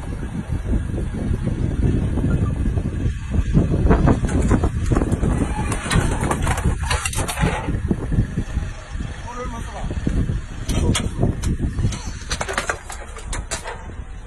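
A car's tyre rolls slowly over paving stones.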